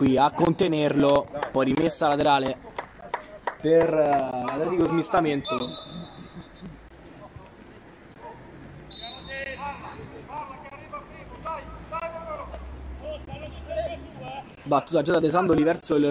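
Football players shout to each other across an outdoor pitch.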